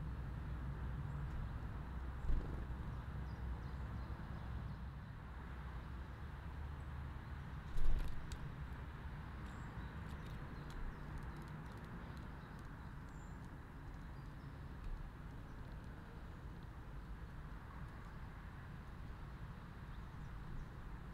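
Rain patters steadily outdoors.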